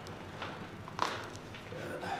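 A joint in a woman's back cracks with a short pop.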